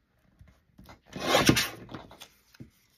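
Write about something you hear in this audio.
A paper trimmer blade slides and cuts through paper.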